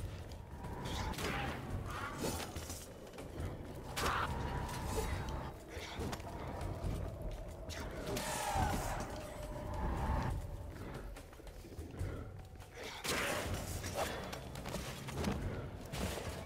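Magic blasts whoosh and crackle.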